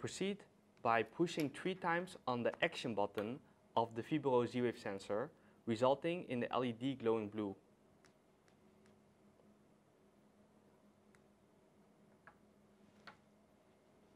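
A small plastic casing clicks as it is twisted apart and handled.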